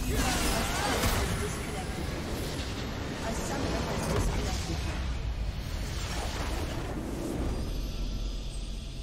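A crystal structure shatters with loud game blasts and crashes.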